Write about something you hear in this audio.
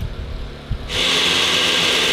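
A blender whirs loudly.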